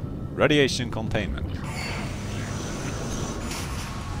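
A heavy metal door slides open with a hiss.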